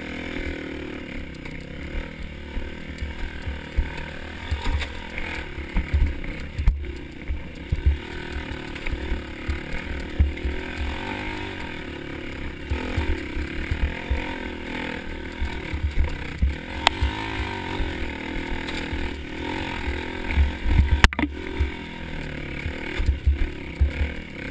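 A dirt bike engine revs and putters up a rocky trail.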